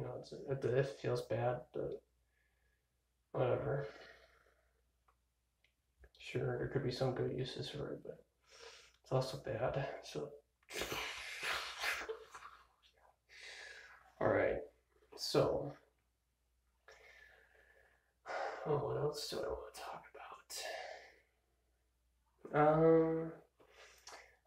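A young man talks casually and close up, in bursts with pauses.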